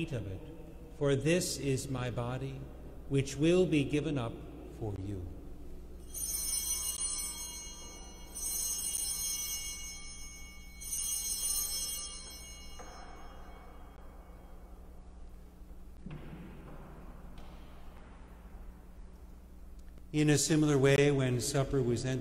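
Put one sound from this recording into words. A man speaks slowly and solemnly through a microphone in an echoing hall.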